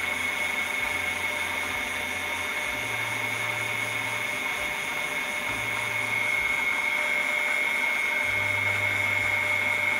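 Water bubbles and splashes into a tank.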